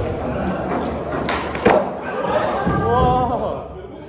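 A skateboard clatters onto a wooden floor.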